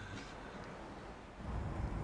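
A young man laughs softly nearby.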